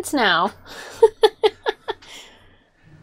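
A young woman laughs in short bursts close by.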